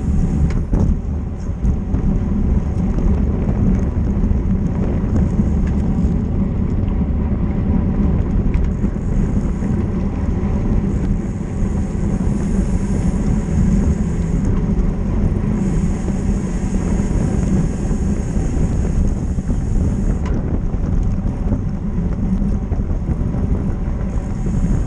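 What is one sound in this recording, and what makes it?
Strong wind rushes and buffets past while cycling fast outdoors.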